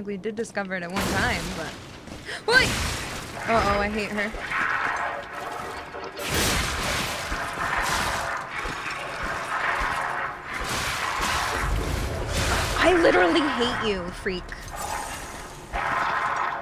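Weapons slash and strike in a fight.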